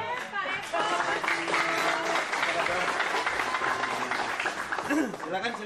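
A crowd laughs and cheers loudly.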